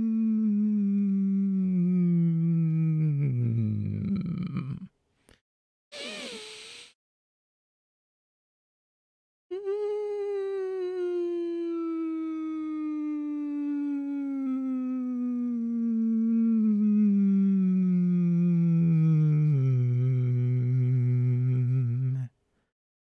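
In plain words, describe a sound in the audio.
A young man sings long, sliding warm-up notes close to a microphone, each slowly falling in pitch.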